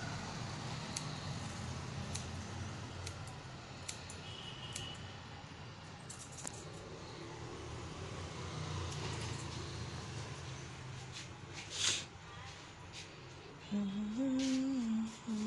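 Scissors snip hair close by in quick, sharp clicks.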